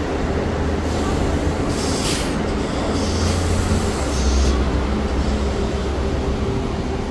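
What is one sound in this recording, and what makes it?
A bus pulls away with a rising engine rumble.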